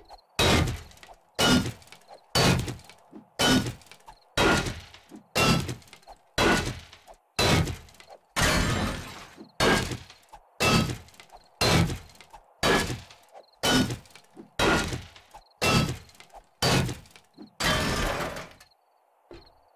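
A pickaxe strikes rock again and again in a steady rhythm, with crumbling stone after each blow.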